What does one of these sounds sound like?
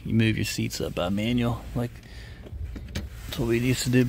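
A car seat lever clicks.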